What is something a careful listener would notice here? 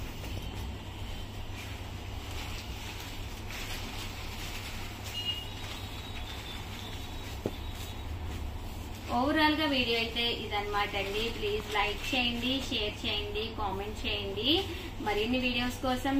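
Fabric rustles as cloth is lifted and folded.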